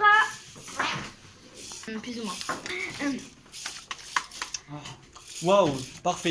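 Young girls talk with animation close by.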